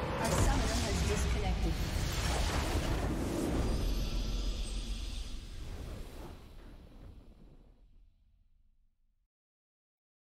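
A triumphant game fanfare swells and then fades away.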